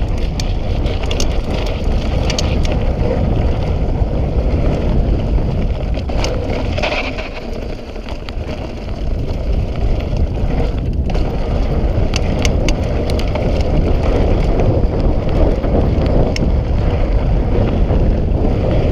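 Wind rushes loudly past a rider moving fast outdoors.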